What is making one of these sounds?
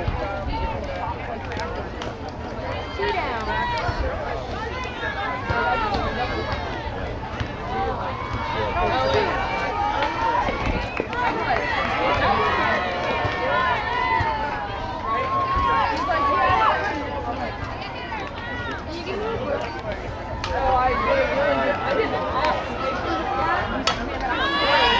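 Many young girls shout and cheer outdoors, their voices overlapping.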